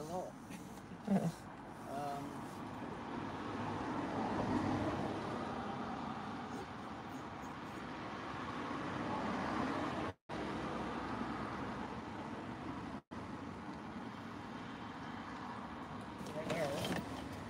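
Cars drive past on a nearby road, their tyres hissing on the tarmac.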